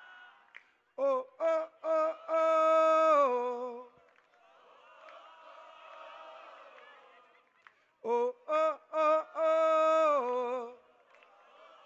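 A man chants loudly into a microphone, heard through loudspeakers.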